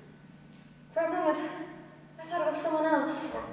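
A woman sings on a stage, heard from afar through loudspeakers.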